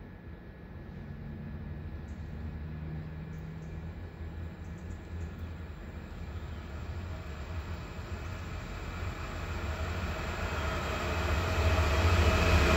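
A train approaches along the tracks, its rumble growing steadily louder.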